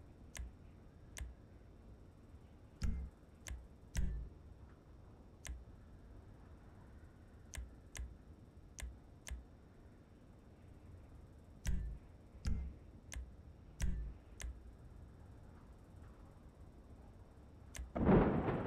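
Menu clicks tick sharply, one after another.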